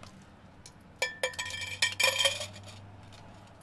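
Coins rattle inside a metal can.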